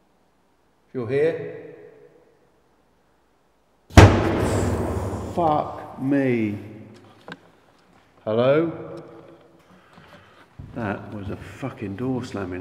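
An older man speaks quietly and tensely, close by.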